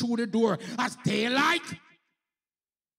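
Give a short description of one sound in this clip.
A man preaches loudly and with animation through a microphone.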